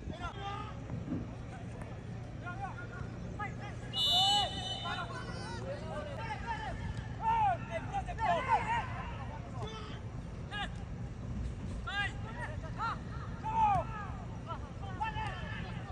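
Young men shout to each other outdoors on an open field.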